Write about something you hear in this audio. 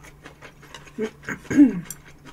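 A young woman hums briefly close to a microphone.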